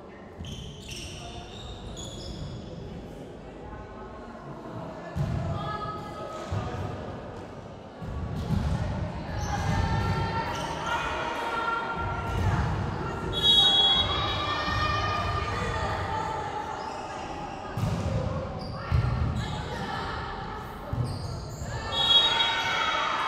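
Young women on court shout and call out to each other.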